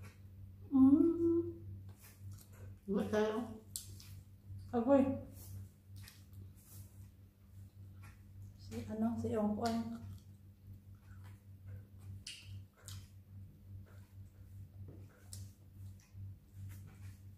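A woman chews and smacks her lips quietly, close by.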